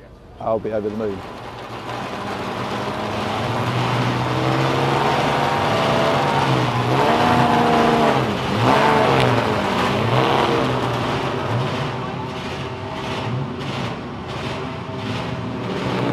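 A racing car engine idles and revs nearby.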